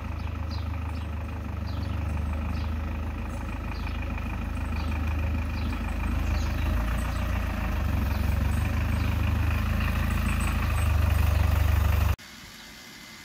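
A quad bike engine rumbles and grows louder as it drives closer.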